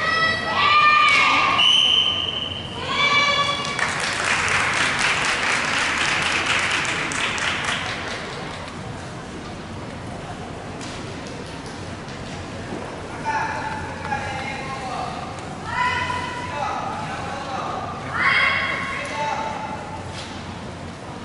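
Competitors shout sharp, drawn-out cries in a large echoing hall.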